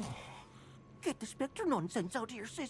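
A young man speaks with irritation.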